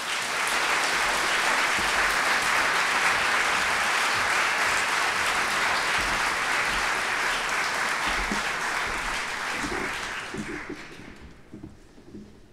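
A large audience applauds loudly in a big hall, then the applause fades away.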